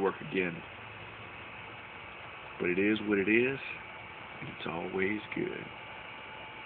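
A man speaks calmly and close by, in short phrases.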